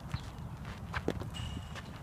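A ball smacks into a catcher's mitt in the distance.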